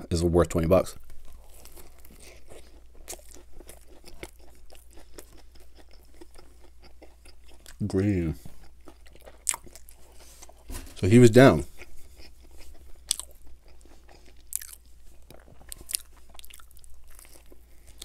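A man chews food with wet, crunchy bites close to a microphone.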